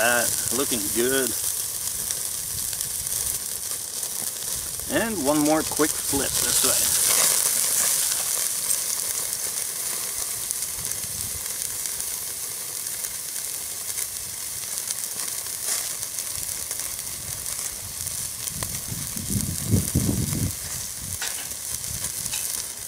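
Meat sizzles steadily on a hot grill, louder for a moment after it is turned over.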